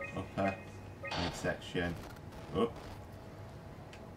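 A computer display crackles with a glitchy buzz.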